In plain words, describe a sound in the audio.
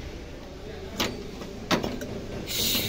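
Metal fittings click against each other as hands handle them.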